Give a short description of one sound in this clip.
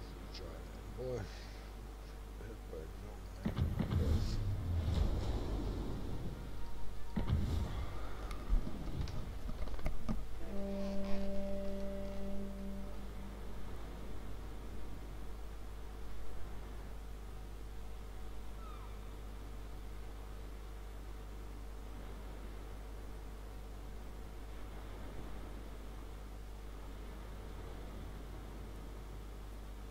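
Water laps gently against a ship's hull.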